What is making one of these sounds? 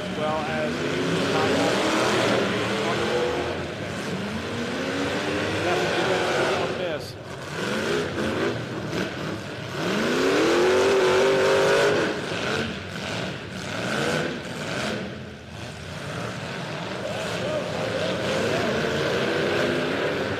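A crowd cheers and murmurs in the stands.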